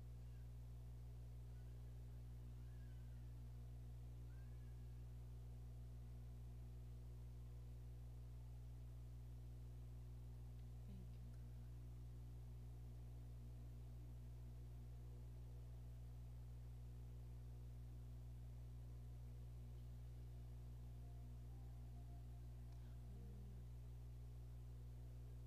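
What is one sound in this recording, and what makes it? A woman speaks faintly into a microphone over a loudspeaker.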